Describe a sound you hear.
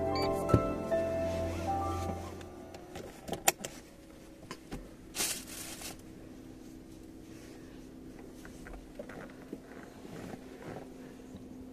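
A car engine hums quietly and steadily from inside the car.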